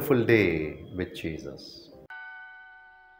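A middle-aged man speaks warmly and close to a microphone.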